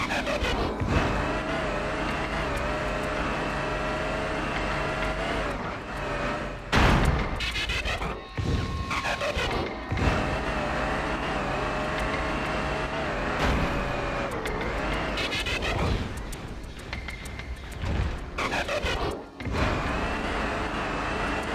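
A truck engine hums steadily and rises and falls as it drives.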